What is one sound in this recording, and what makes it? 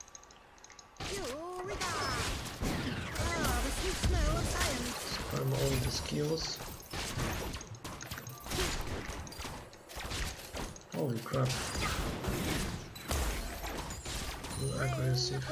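Video game battle effects clash, zap and crackle.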